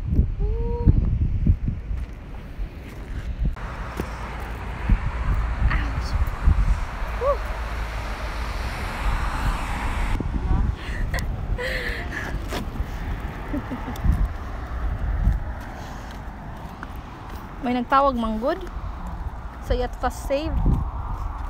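A young woman talks cheerfully close to a phone microphone.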